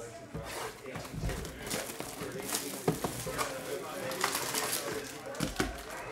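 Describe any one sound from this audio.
A cardboard box is torn open.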